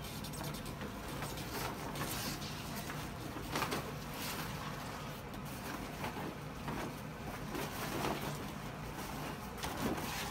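A fabric cover rustles and swishes.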